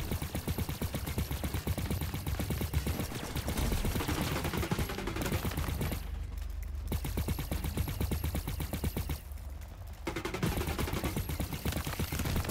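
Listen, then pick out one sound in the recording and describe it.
Explosions burst with loud blasts.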